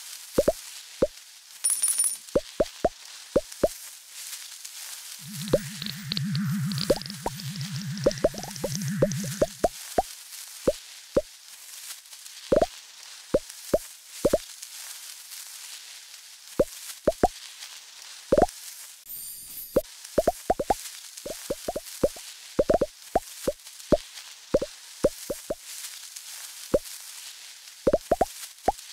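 Short electronic pops sound again and again as a game snake eats pellets.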